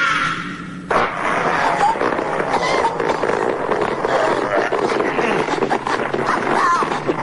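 A man groans and chokes in pain.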